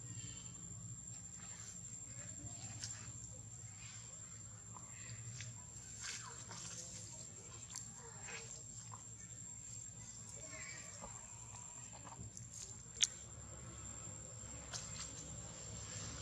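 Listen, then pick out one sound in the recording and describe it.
Dry leaves rustle under small feet.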